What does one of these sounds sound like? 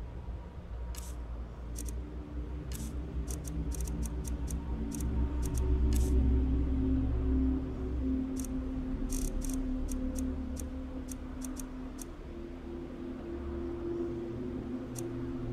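Soft menu clicks tick as a video game's item list is scrolled.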